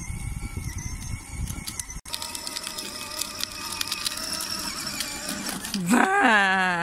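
A toy motorbike's electric motor whirs steadily as it rolls over pavement.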